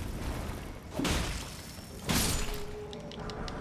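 A flaming torch whooshes through the air in heavy swings.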